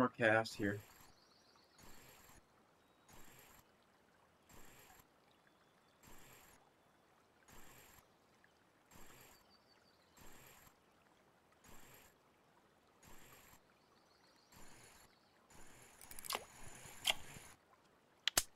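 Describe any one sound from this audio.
A fishing reel clicks and whirs in regular bursts as it is wound in.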